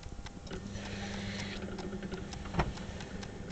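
A clay bowl knocks as it is lifted off a wheel.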